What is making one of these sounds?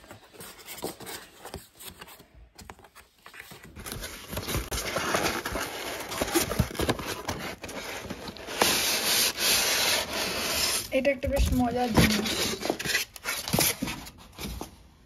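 Cardboard boxes rustle and scrape as they are shifted.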